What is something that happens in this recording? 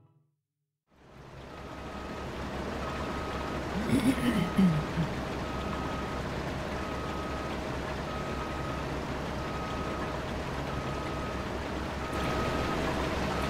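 A large harvester engine rumbles steadily.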